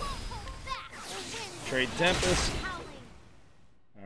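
Magic blasts crackle and whoosh in a video game battle.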